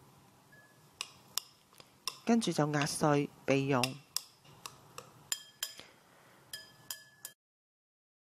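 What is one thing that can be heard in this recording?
Chopsticks clink against a ceramic bowl.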